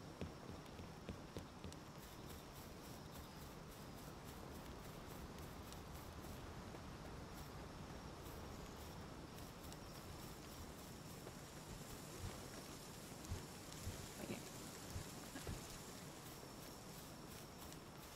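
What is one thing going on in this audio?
Footsteps tread on soft ground.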